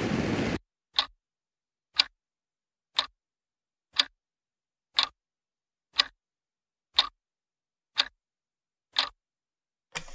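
A clock ticks at an even pace.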